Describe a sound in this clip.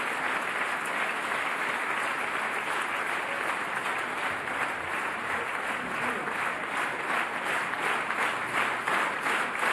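A large audience applauds steadily in an echoing theatre.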